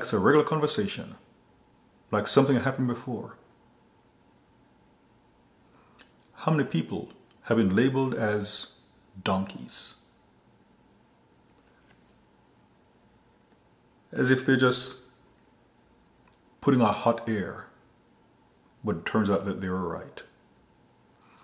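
A man speaks close to a microphone in short, emphatic bursts with pauses between.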